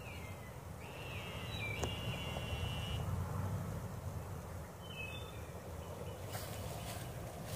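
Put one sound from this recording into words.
Wind blows through leafy trees outdoors.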